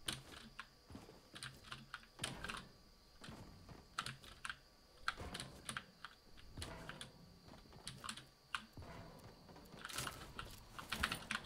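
Footsteps clatter quickly on a hard roof.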